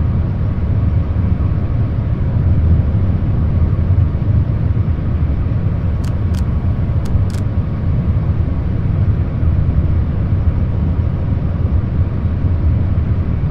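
A train rumbles steadily along the tracks at speed.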